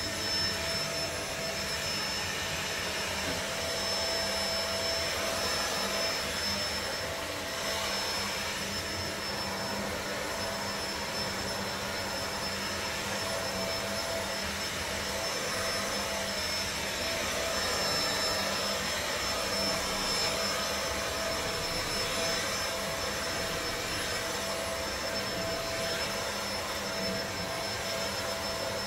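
A vacuum cleaner whirs steadily as it is pushed back and forth over carpet.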